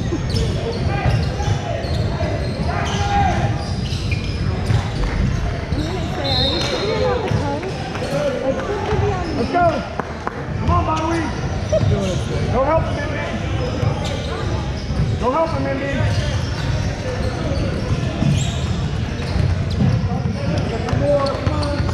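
Sneakers squeak on a wooden floor in a large echoing gym.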